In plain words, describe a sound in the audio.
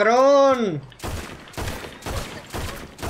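Gunshots fire several times in quick succession.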